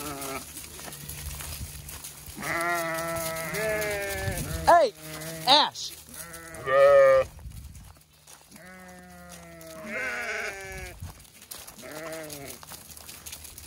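Hooves crunch on gravel as goats trot past.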